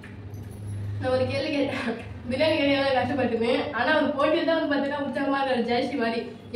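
A young woman talks and laughs cheerfully close by.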